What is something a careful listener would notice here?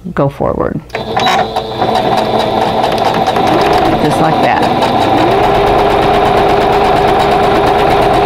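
A sewing machine runs steadily, its needle stitching rapidly.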